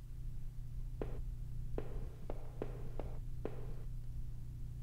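Footsteps tap at an even pace on a hard floor.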